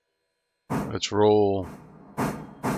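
A steam locomotive whistle blows once, loud and briefly.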